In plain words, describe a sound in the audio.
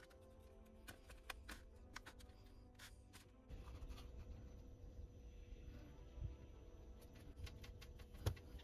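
A tool scrapes and taps on a soft modelling surface.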